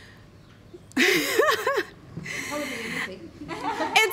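A young woman laughs heartily close to a microphone.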